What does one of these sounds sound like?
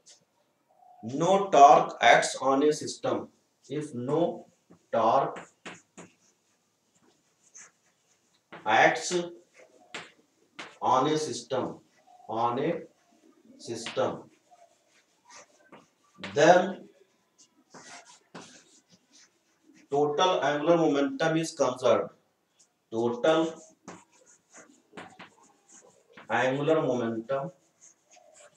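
A middle-aged man speaks calmly, in phrases with pauses.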